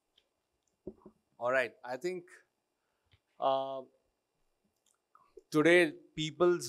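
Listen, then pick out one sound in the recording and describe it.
A middle-aged man speaks through a microphone, pausing between phrases.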